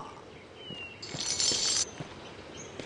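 A bright shimmering chime rings briefly.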